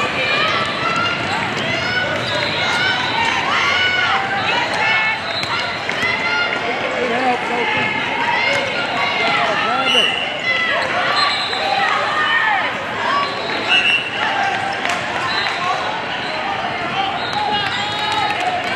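Young women call out and chatter, echoing in a large hall.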